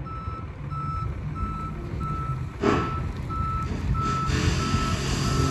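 A reversing alarm beeps steadily at an even pace.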